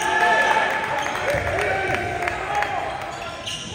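A basketball bounces on the court in an echoing gym.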